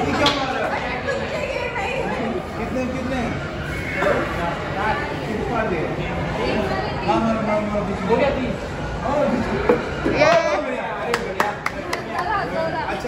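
Several young men talk and call out nearby.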